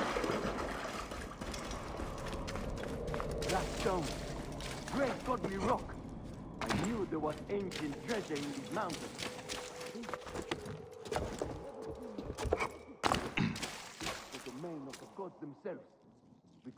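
Footsteps tread on a stone floor in a cavernous, echoing space.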